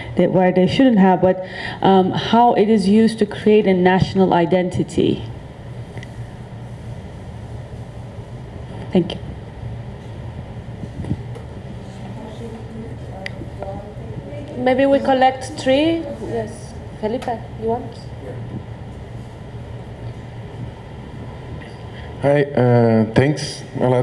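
A woman speaks into a microphone with animation.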